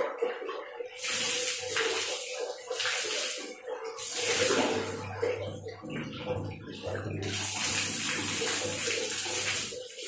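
Water pours and splashes from a mug.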